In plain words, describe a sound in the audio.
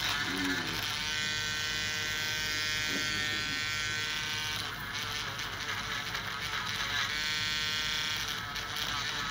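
A nail drill whines as it grinds down a thick toenail.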